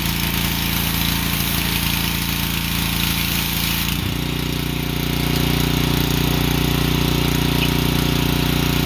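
A pressure washer engine drones steadily nearby, changing pitch once.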